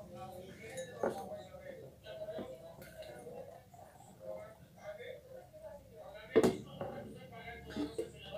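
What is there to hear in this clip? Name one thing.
Thick liquid pours into a glass.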